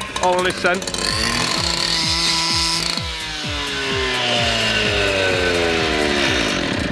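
A power cutter saw whines as it cuts through stone.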